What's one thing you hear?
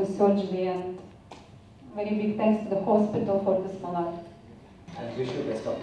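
A woman speaks calmly into a microphone, heard through a loudspeaker in a large room.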